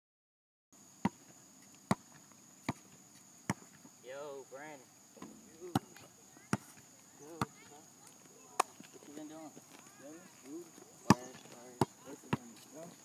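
A basketball bounces on asphalt.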